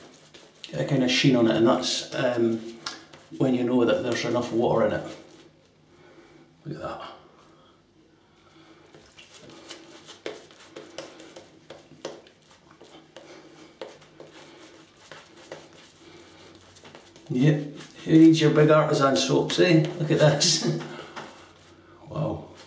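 A razor scrapes through stubble with short rasping strokes.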